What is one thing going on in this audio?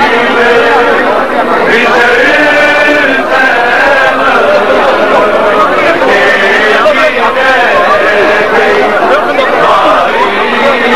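A dense crowd of men chants and shouts loudly all around.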